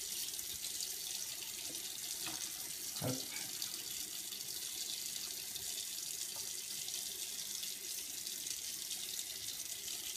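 Water runs thinly from a tap.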